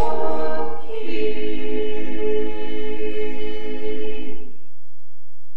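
A choir of elderly men and women sings a held final chord in a large echoing church.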